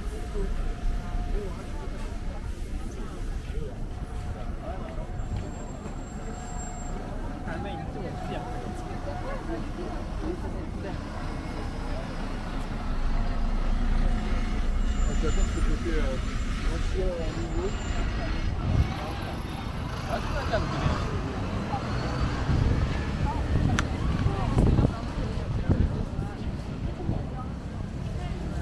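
People chatter nearby as they walk past.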